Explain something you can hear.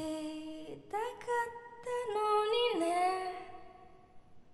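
A young woman sings into a microphone with a clear, high voice.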